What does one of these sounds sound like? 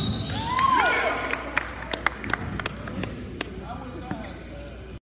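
Shoes squeak and thump on a wrestling mat.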